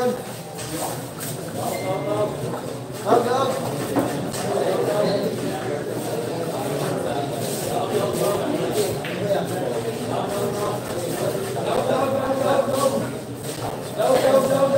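Young men chatter and talk nearby in a crowd.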